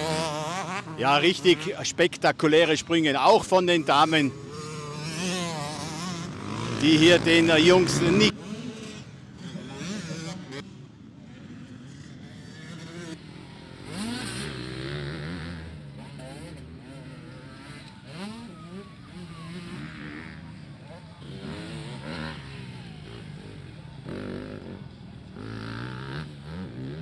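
Motocross bike engines rev loudly and roar past.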